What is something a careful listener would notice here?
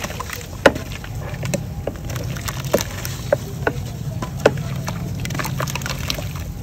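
Chunks of wet chalk crumble and crack in a hand.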